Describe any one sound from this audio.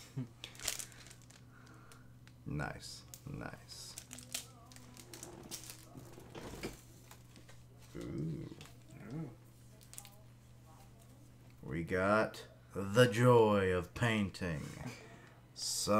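A plastic package crinkles in hands.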